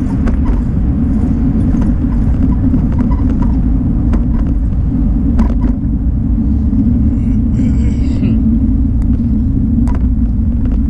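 Wind rushes and roars steadily past a moving vehicle.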